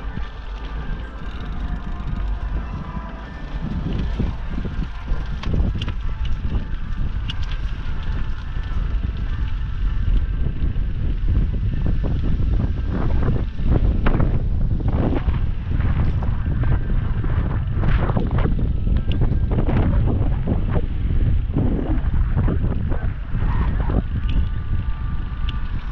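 Wind buffets loudly and rumbles outdoors.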